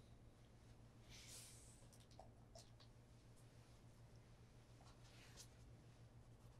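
A cloth rustles softly.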